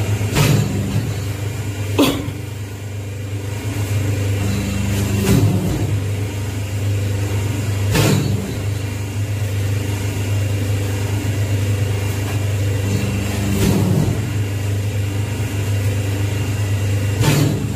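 A hydraulic press thumps down and releases with clunks.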